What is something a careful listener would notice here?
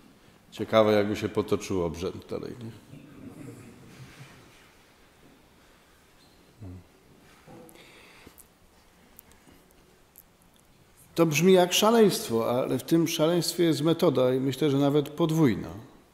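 A middle-aged man speaks calmly into a microphone in an echoing room, pausing between phrases.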